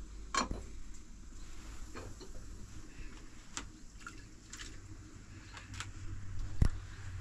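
Dishes and a cup clink and knock against a basin.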